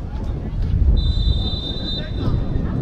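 A referee's whistle blows briefly in the distance.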